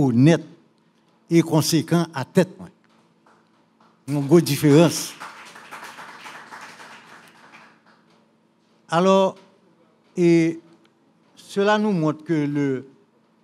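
An elderly man speaks emphatically into a microphone in a reverberant room.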